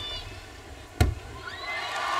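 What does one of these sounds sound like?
A gymnast lands on a mat with a heavy thud.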